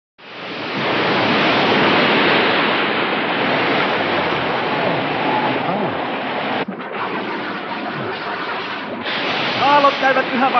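Big waves crash and roar.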